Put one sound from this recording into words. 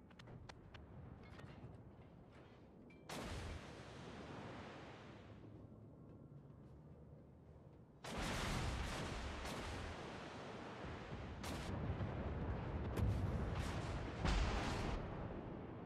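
Shells splash into water nearby.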